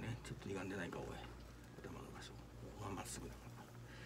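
Paper rustles softly under fingers.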